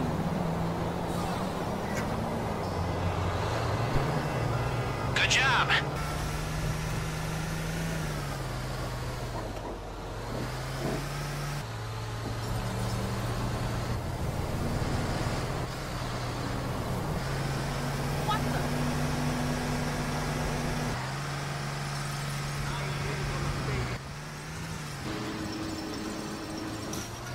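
A bus engine drones steadily, its pitch rising and falling as it drives.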